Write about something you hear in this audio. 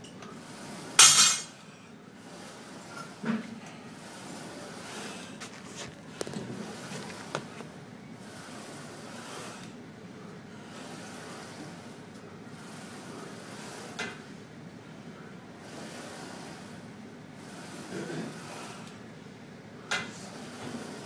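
Weight plates on a leg press machine clank and thud now and then.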